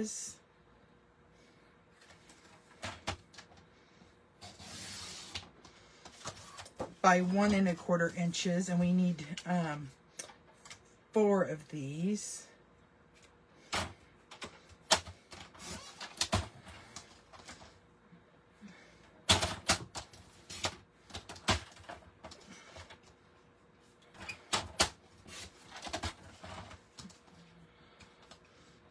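Card stock rustles and taps as hands move it.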